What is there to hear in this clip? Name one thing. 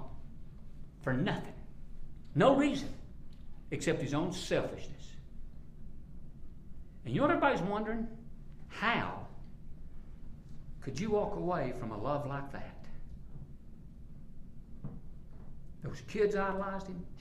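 An elderly man speaks calmly and clearly into a clip-on microphone, with pauses between phrases.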